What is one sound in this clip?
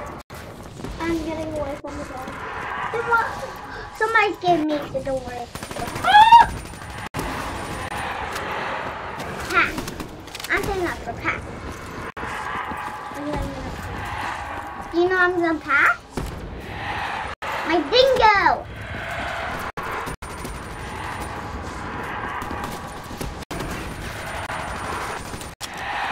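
Gunshots from a video game ring out.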